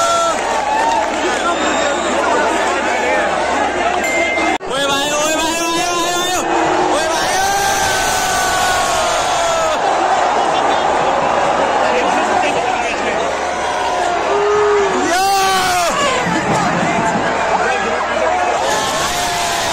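A large stadium crowd roars and chants loudly outdoors.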